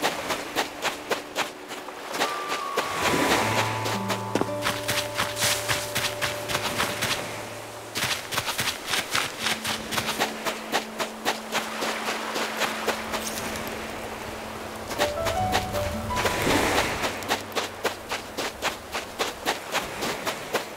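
Waves lap gently at a shore.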